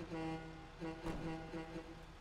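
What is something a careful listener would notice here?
A truck door slams shut.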